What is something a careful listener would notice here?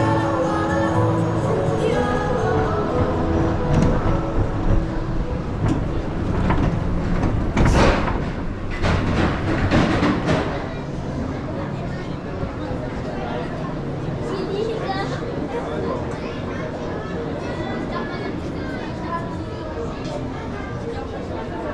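A ride car rumbles and clatters along a track.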